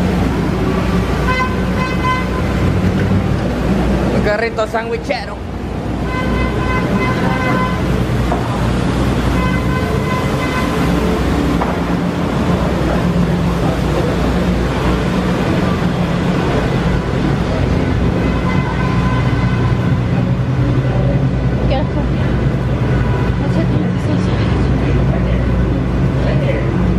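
A steady din of city traffic and bustle fills the air outdoors.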